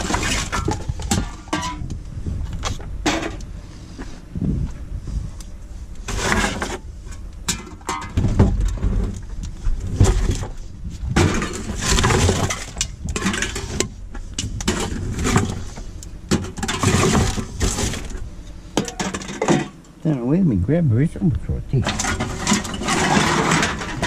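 Plastic bottles and cans clatter and crinkle as a hand rummages through them.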